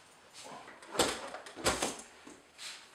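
A heavy power tool bumps and knocks against a metal case as it is lifted out.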